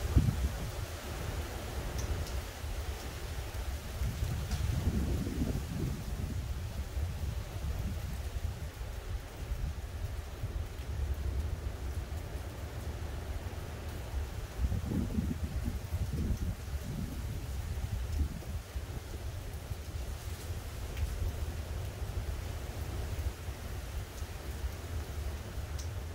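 Wind blows steadily outdoors, rumbling across the microphone in gusts.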